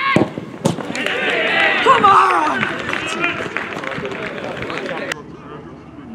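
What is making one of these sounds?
A small crowd of spectators cheers and shouts outdoors.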